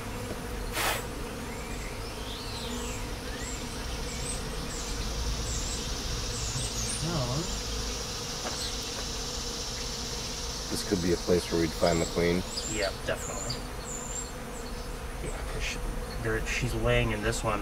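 Birds chirp outdoors.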